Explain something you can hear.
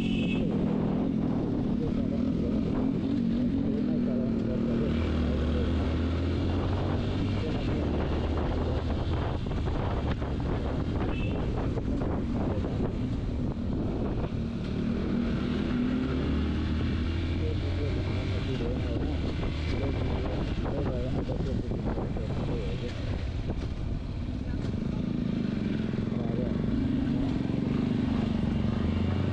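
A motorcycle engine hums and rises and falls in pitch as the rider speeds up and slows down.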